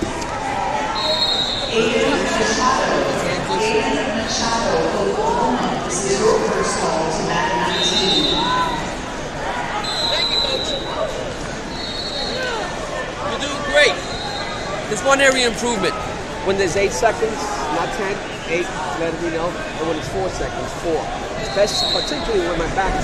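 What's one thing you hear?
A referee blows short blasts on a whistle.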